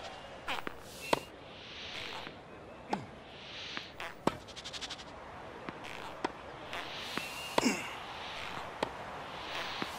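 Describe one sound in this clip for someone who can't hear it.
Tennis rackets strike a ball back and forth in a quick rally.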